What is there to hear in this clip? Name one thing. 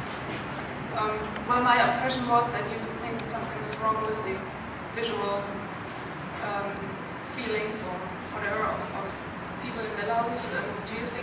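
A woman asks a question through a microphone and loudspeaker.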